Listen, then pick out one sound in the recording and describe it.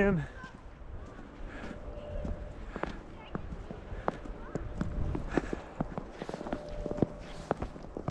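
Footsteps crunch steadily on fresh snow.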